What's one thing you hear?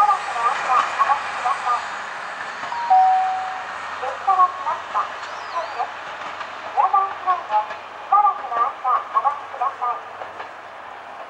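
A small train rolls away along the track.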